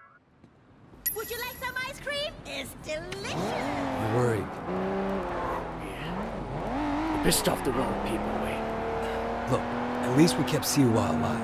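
A car engine revs and accelerates.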